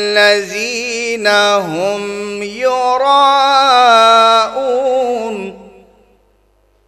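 A young man sings a long, wavering chant loudly into a microphone, then falls silent.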